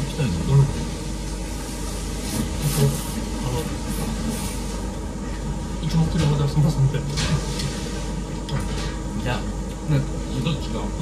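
Men slurp noodles loudly up close.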